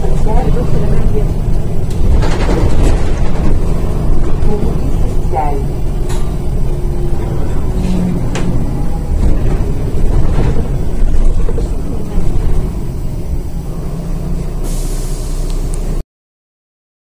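A bus body rattles and creaks as it rolls along.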